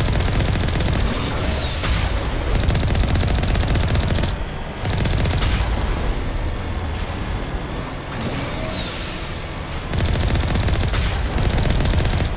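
Tyres crunch over gravel and rock.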